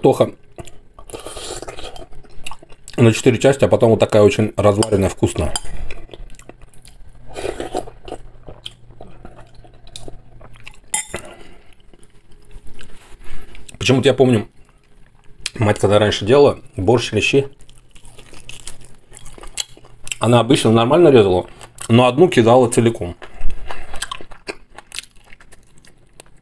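A man chews and slurps food noisily.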